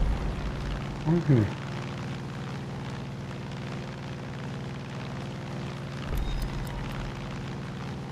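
A small propeller plane's engine drones.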